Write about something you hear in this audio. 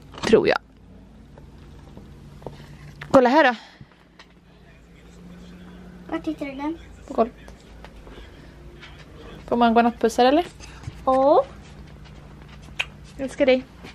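A woman speaks playfully close by.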